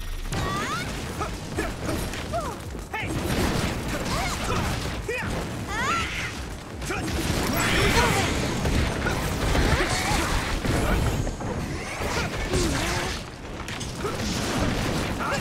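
Swords clash and slash in rapid combat.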